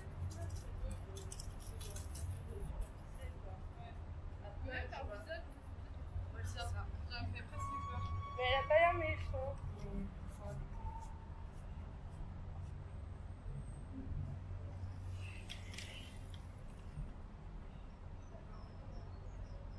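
Wind blows outdoors, rustling the leaves of nearby plants.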